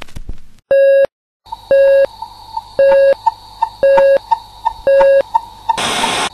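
A short beep sounds once every second.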